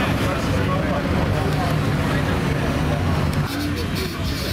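A truck engine idles nearby.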